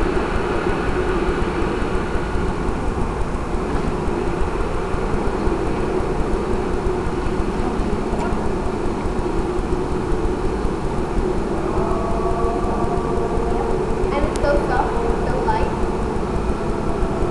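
A man speaks loudly through a microphone in an echoing hall.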